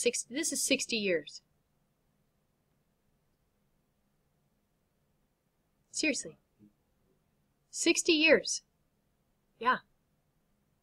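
A woman speaks calmly through a microphone, in short bursts with pauses.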